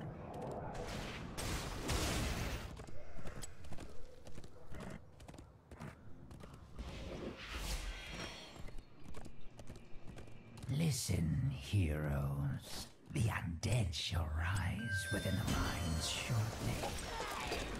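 Game sound effects of spells and hits burst and clash.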